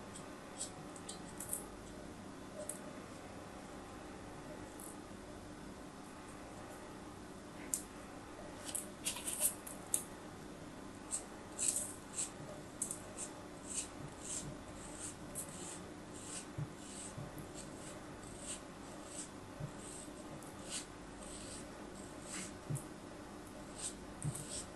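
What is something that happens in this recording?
A blade scrapes and cuts through packed sand with soft crunching.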